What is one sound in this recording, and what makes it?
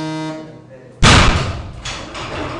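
A heavy barbell crashes down onto the floor.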